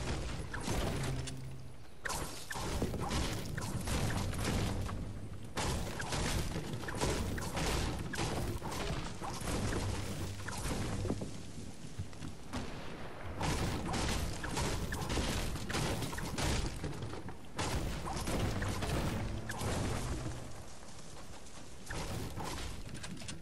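A pickaxe strikes wood with repeated hard knocks.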